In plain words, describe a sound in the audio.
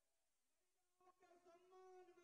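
An elderly man speaks loudly through a microphone and loudspeaker, with animation.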